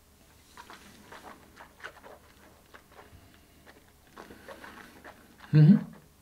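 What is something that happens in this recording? A man sniffs a drink several times, up close.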